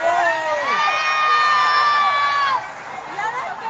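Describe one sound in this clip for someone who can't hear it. A fire truck's horn blares loudly.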